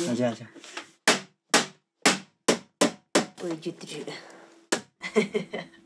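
A hammer taps sharply on metal, again and again.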